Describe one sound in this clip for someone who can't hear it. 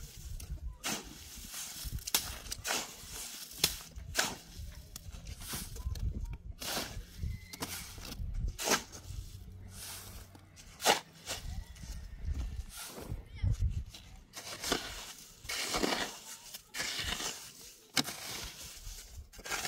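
A shovel scrapes and thuds through wet cement mix on the ground.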